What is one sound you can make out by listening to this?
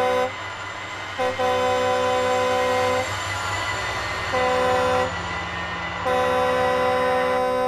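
Train wheels clatter over the rails.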